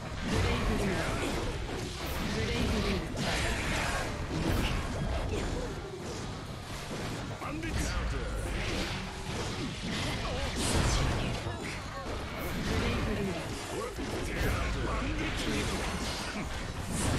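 Swords clash and strike with sharp, rapid impacts.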